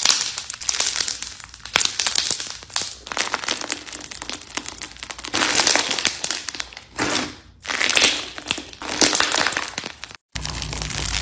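Hands squish and crackle a crunchy slime.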